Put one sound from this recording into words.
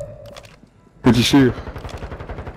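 A loud alert tone sounds in a video game.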